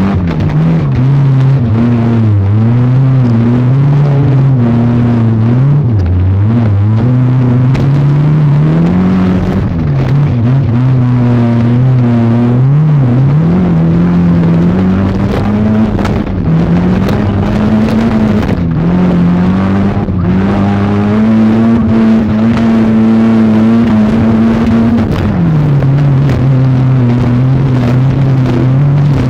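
A car engine roars close by, revving up and down.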